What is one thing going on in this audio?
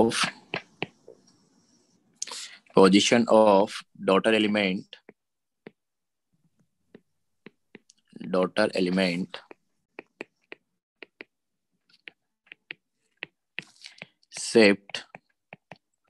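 A stylus taps lightly on a tablet.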